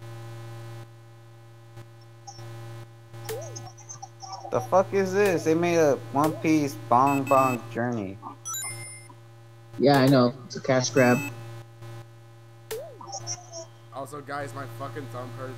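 Quiet electronic game music plays steadily.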